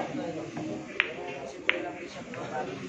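Billiard balls clack together.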